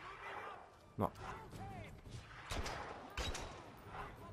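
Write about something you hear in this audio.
Gunshots crack sharply several times.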